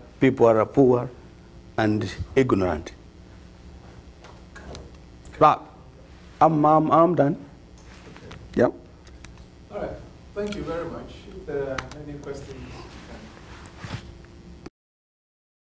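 A man speaks through a microphone, pausing often.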